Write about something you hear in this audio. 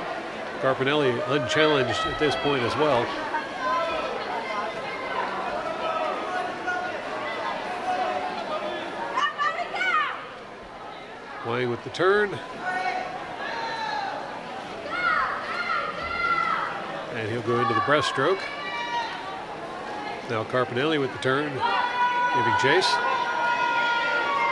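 A crowd of young people cheers and shouts loudly in a large echoing hall.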